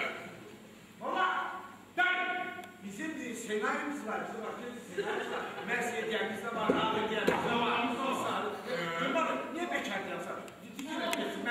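A man shouts with animation in an echoing hall.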